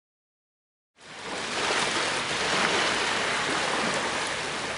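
Small waves wash softly onto a sandy shore.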